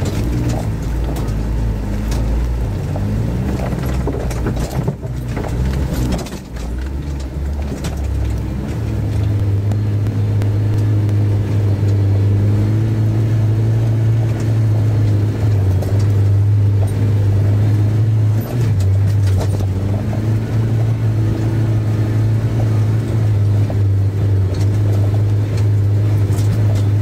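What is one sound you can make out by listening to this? Tyres crunch over rough stones and snow.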